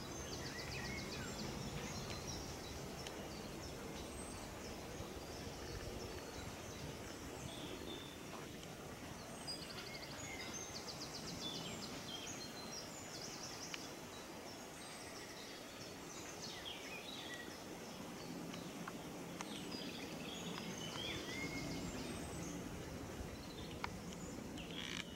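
A bee buzzes softly up close.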